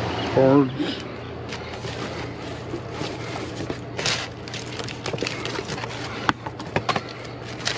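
A grabber tool clicks and knocks against packaging.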